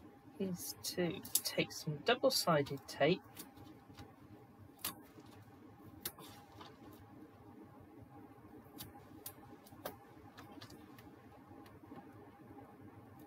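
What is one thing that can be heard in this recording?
Stiff paper crinkles and rustles as it is folded by hand.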